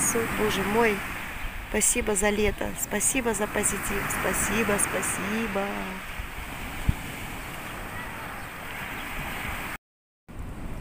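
Waves break and wash onto a shore.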